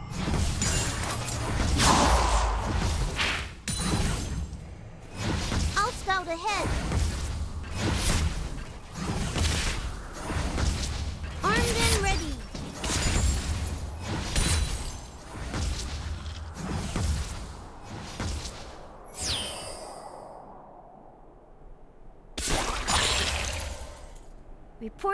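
Video game sound effects of spells and attacks crackle and whoosh.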